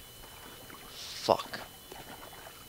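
A body splashes through water.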